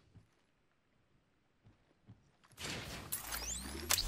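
A metal door slides open with a whoosh.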